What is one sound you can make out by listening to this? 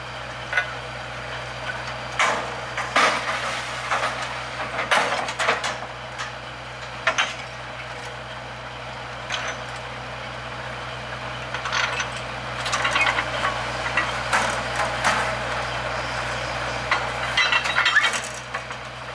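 A drilling rig engine hums steadily outdoors.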